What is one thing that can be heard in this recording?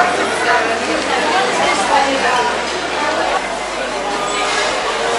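A crowd of people chatters, echoing through a large indoor hall.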